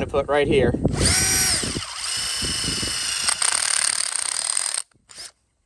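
A cordless drill whirs.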